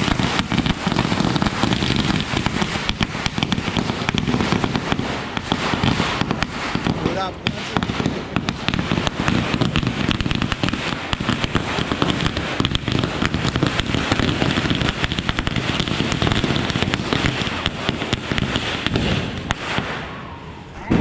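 Firecrackers crackle and bang rapidly nearby.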